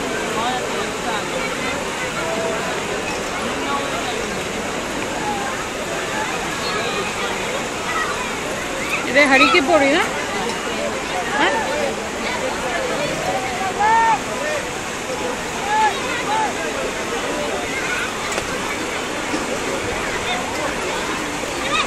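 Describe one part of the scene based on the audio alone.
A large outdoor crowd talks and calls out in a steady murmur.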